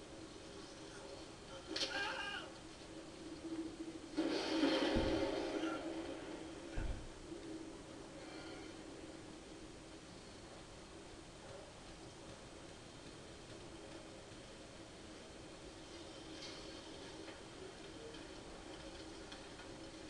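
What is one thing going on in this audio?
Video game sounds play loudly through loudspeakers in a large room.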